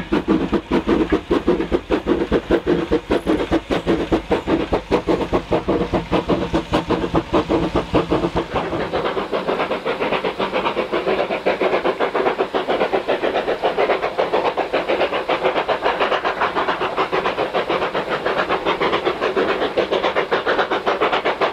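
A steam locomotive chuffs hard in a fast, steady rhythm.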